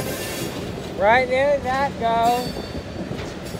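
Steel wheels of a freight car squeal on a curved track.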